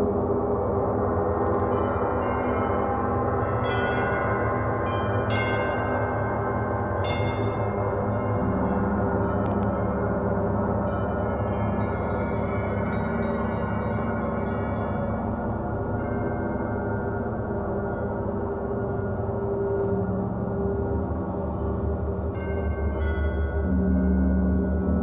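Large gongs hum and shimmer in a deep, steady, ringing drone.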